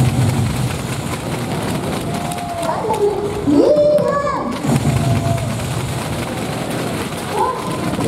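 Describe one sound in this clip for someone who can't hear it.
Volleyballs thump as players hit and bounce them in a large echoing hall.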